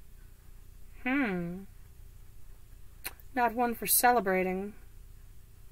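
A woman speaks calmly close by, in short phrases.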